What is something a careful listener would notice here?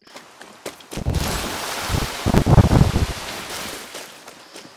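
A body tumbles heavily to the ground.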